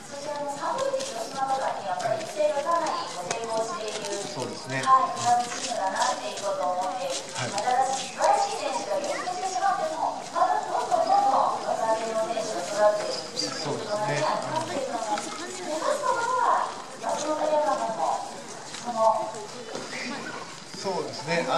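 A young woman talks with animation through a microphone and loudspeakers.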